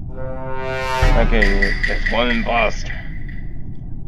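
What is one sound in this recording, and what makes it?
A deep boom and a shimmering chime play as a game round begins.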